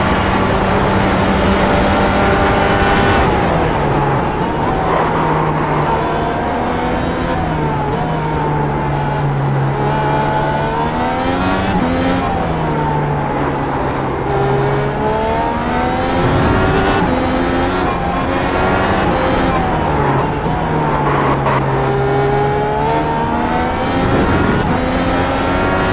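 A racing car engine roars loudly, revving up and down through the gears.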